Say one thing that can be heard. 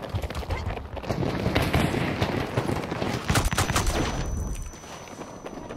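An explosion booms nearby and rumbles.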